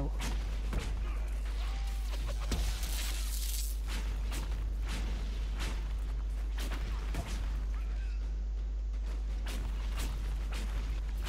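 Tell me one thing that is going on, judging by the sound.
Magic spells crackle and burst in quick, sharp blasts.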